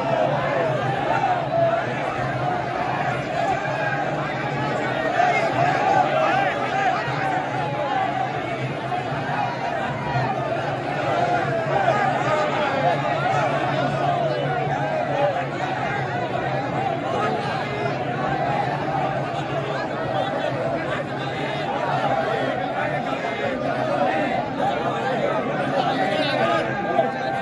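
A huge crowd of men chants and shouts loudly outdoors.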